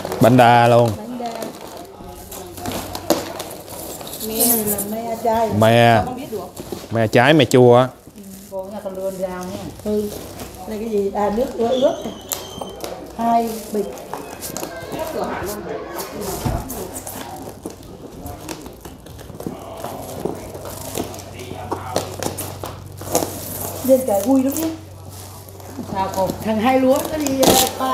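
Women talk with animation close by.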